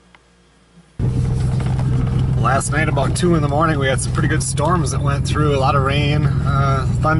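A car engine hums steadily while driving on a dirt track.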